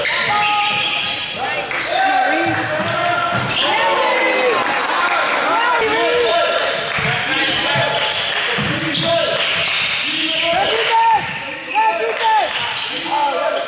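Basketball shoes squeak on a hardwood court in an echoing gym.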